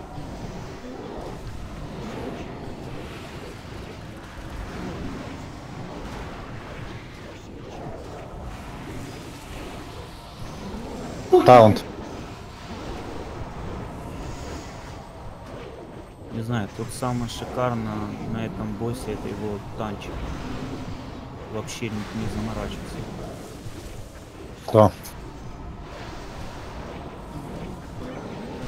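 Spell blasts and battle effects crackle and whoosh throughout a fight.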